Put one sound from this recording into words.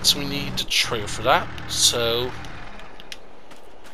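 A pickup truck engine revs as it drives.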